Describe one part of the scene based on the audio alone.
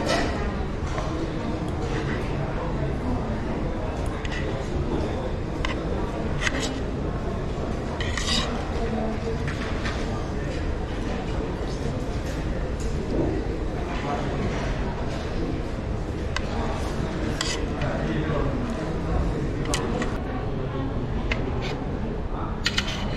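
Metal cutlery clinks and scrapes against a plate.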